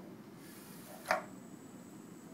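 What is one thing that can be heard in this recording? A robot gripper clacks shut on a metal can.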